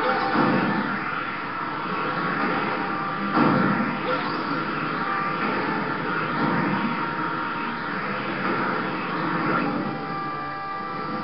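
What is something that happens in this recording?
Video game music plays through a television's speaker.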